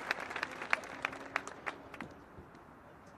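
Boots click sharply on pavement in marching steps.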